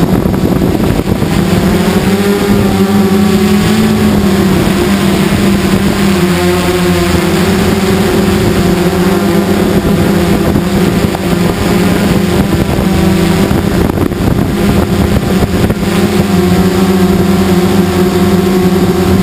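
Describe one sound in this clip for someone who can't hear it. Drone propellers buzz loudly and steadily, shifting slightly in pitch.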